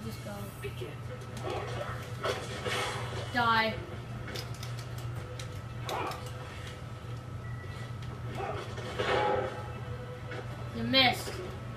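Game fighters' punches and blows thud and crash, heard through a television speaker.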